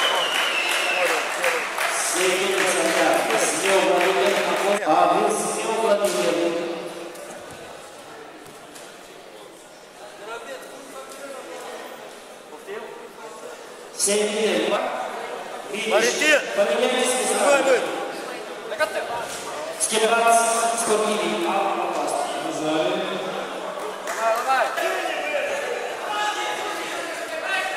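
A crowd of children and adults shouts and cheers loudly in a large echoing hall.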